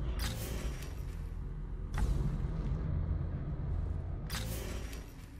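A soft whoosh sounds several times.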